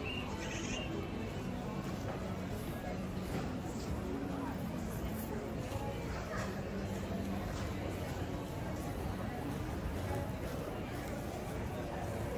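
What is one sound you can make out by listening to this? Footsteps tap on a hard floor.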